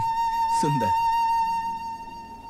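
A flute plays a single held note.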